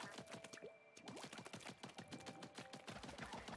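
Ink splats in rapid bursts as a game character shoots.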